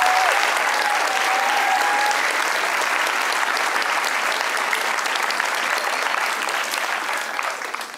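A large crowd cheers and whistles.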